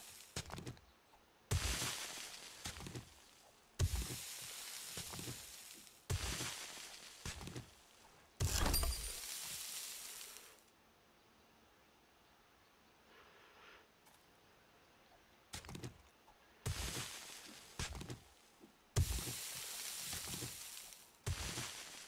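A shovel digs into gravelly earth with crunching thuds.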